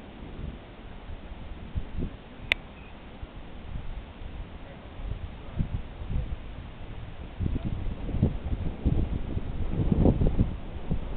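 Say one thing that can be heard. Gusty wind blows outdoors through trees, growing stronger toward the end.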